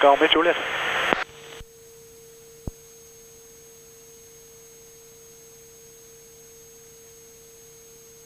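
A single-engine diesel light aircraft drones in flight.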